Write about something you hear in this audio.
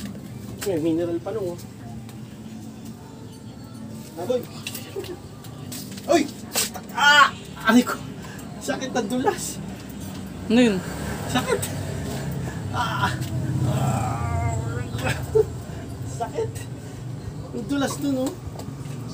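A man talks close by, with animation.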